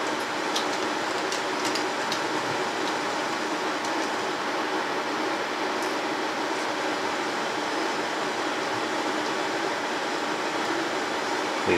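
A plastic cap clicks and rattles as it is twisted on a bottle.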